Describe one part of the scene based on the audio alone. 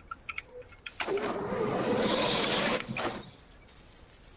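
Dry leaves rustle loudly as something pushes through a pile.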